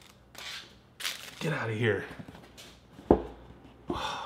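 A box is picked up and bumps against a table.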